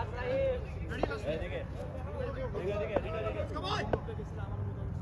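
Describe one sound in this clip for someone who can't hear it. A cricket bat knocks sharply against a ball.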